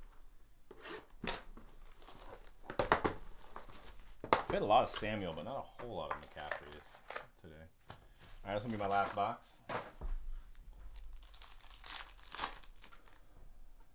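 Plastic card packs rustle and crinkle in hands.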